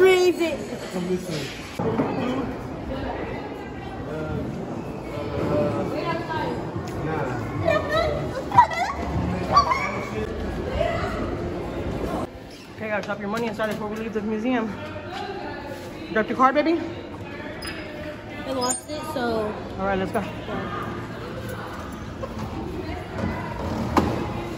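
Children talk and call out nearby.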